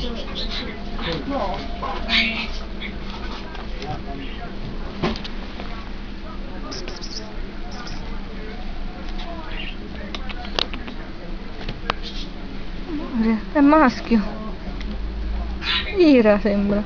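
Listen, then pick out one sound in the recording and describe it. Kittens scramble and rustle on paper and litter.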